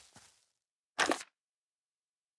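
A short menu chime sounds.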